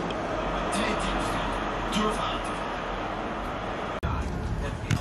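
A football video game's crowd noise plays from a television.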